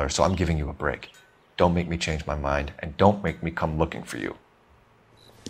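A young man speaks firmly and warningly, close by.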